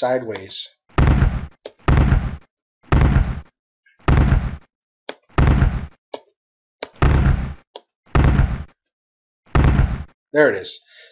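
Explosions boom again and again in a video game.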